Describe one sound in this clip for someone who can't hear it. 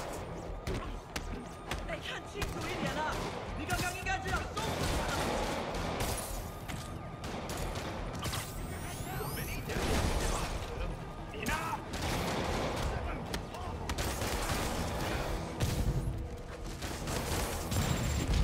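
Punches land with heavy thuds during a brawl.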